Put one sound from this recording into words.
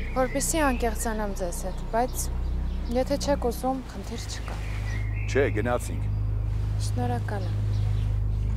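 A young woman speaks calmly up close.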